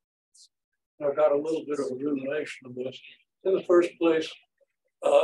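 A man lectures calmly, close by.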